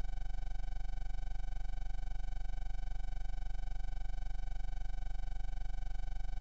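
A low, buzzy tank engine drone from an old computer game pulses steadily.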